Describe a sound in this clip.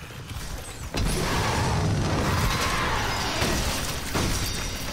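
A flamethrower roars with a burst of fire.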